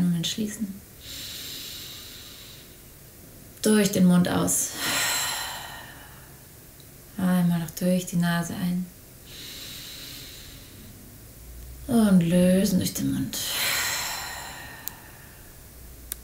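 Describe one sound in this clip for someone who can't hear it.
A young woman breathes in and out slowly and audibly.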